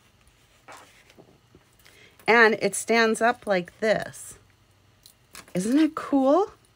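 Stiff paper rustles softly as a folded card is opened and closed.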